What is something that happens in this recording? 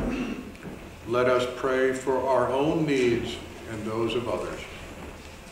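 An older man intones a prayer aloud in a softly echoing room.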